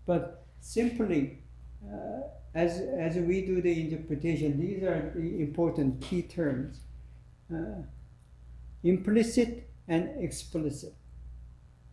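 An elderly man speaks calmly in a small room.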